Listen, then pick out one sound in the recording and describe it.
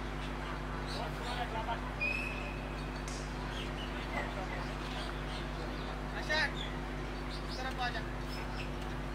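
Men talk and call out faintly in the distance outdoors.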